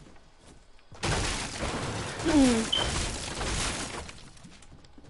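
A pickaxe strikes furniture with sharp knocks.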